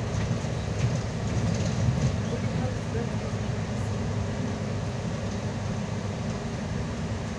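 The bus rattles and clunks over a snowy road.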